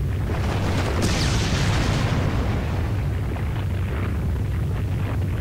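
A fiery blast roars up in a rush.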